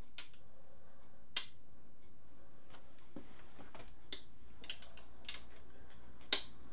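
Metal parts click and clink close by.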